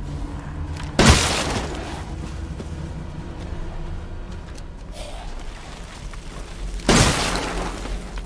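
A gun fires single loud shots that echo away.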